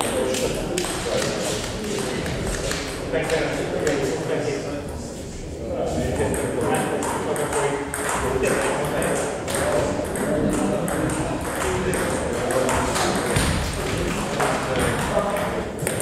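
Several men chat casually in a large echoing hall.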